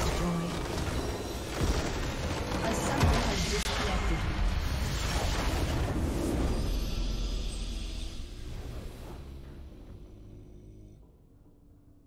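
A game explosion booms and rumbles, then fades away.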